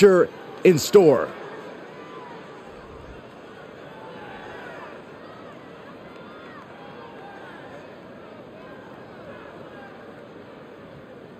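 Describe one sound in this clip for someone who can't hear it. A large crowd cheers and whistles in a big arena.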